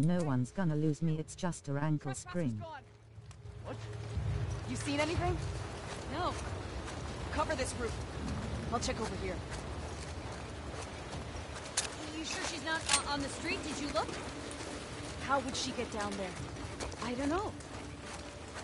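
Footsteps crunch softly on gravel and wet ground.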